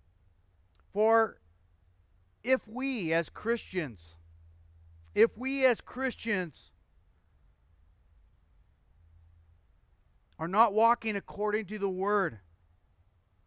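A middle-aged man speaks calmly and earnestly into a microphone, with pauses between phrases.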